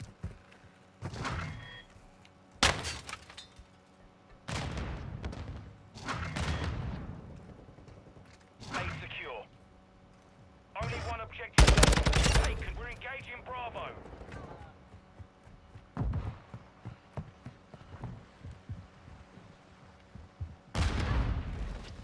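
Gunfire bursts out in short loud volleys.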